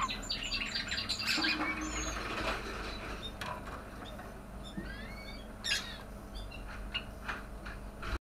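Budgerigars chirp and warble busily close by.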